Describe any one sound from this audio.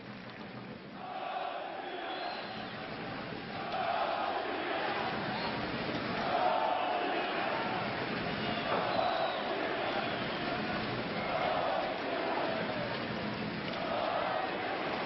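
A large crowd chants and roars in an open stadium.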